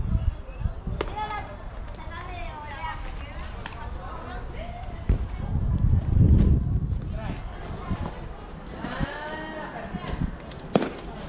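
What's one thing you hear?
Young men call out to each other across a field.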